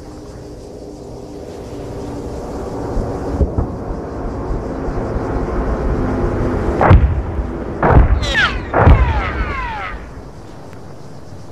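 An aircraft engine drones, growing louder as it approaches.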